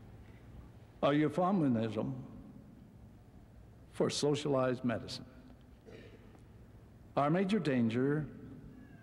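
An elderly man speaks slowly and solemnly into a microphone, in short phrases with pauses.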